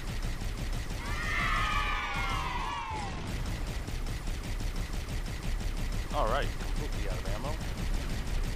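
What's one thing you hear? Energy weapons fire in short bursts.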